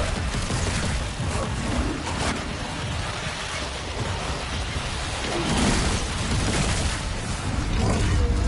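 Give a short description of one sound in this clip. A monster snarls and growls close by.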